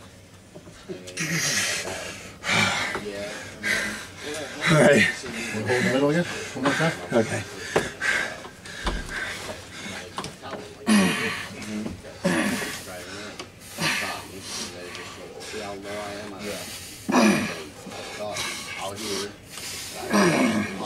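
Several men talk close by with animation.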